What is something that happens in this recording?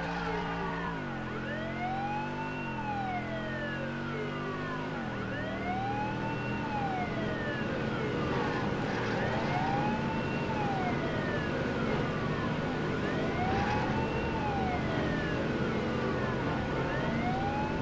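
A car engine roars, rising and shifting gears.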